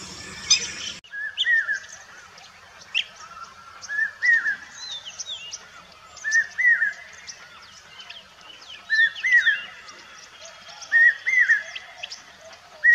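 A common hawk cuckoo gives rising, repeated calls.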